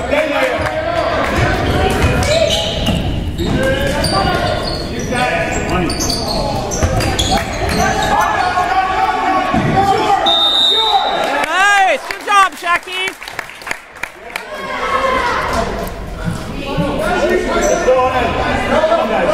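Young players and spectators shout and call out, echoing in a large hall.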